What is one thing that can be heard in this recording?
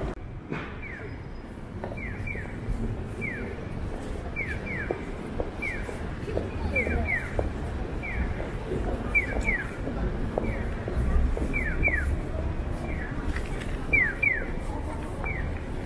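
A pedestrian crossing signal chirps in quick repeated bursts.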